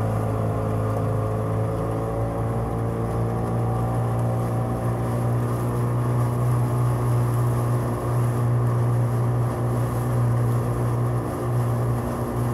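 A motorboat engine hums steadily close by.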